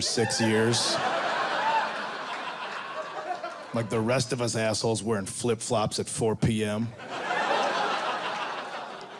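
An audience laughs and cheers.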